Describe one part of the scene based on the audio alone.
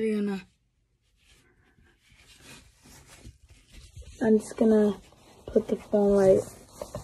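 A boy speaks loudly and close up.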